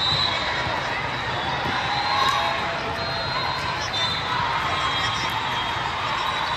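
Shoes squeak sharply on a hard court in a large echoing hall.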